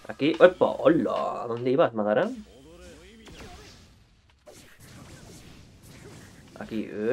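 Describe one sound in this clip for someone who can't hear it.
Fighting game blows whoosh and clash.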